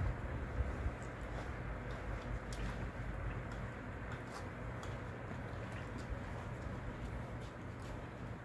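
A puppy's claws click on a hard floor.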